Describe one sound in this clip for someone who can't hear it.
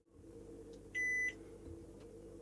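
A handheld meter gives a short, steady beep.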